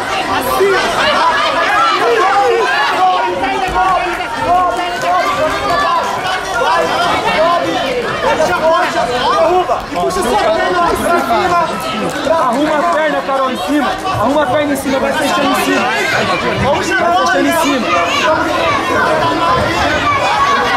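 A crowd of men and women shout and call out encouragement nearby, in a large echoing hall.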